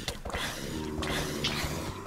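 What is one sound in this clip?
A blow lands with a short thud.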